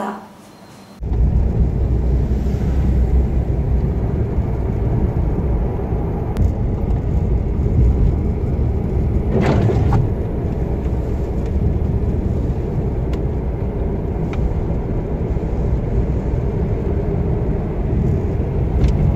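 A car drives along a road, heard from inside with a steady low rumble.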